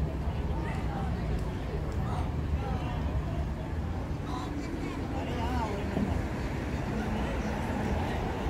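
Water laps gently against a moored boat's hull.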